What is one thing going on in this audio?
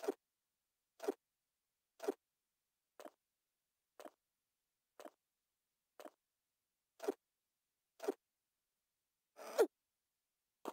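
Short grunts of effort sound at a steady pace.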